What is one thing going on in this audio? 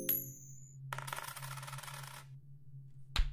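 A coin spins with a bright jingling sound.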